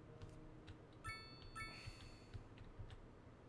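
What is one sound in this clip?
A game interface chimes softly.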